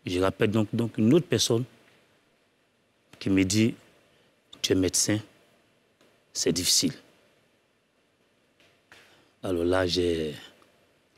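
A man speaks calmly into a microphone in short phrases with pauses.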